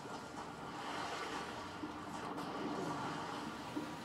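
Water splashes as a game character swims through it.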